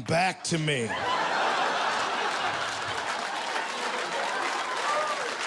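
An audience laughs and applauds in a large room.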